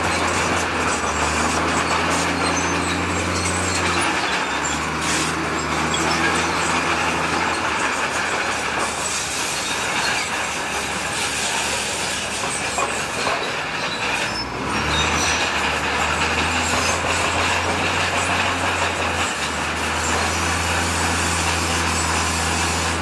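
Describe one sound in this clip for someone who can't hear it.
A diesel engine rumbles and drones steadily close by.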